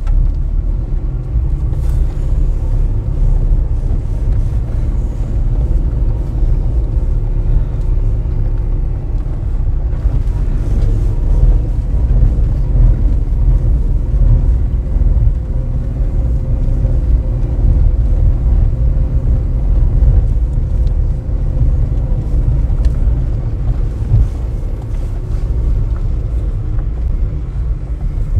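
A vehicle's engine rumbles steadily as it drives uphill.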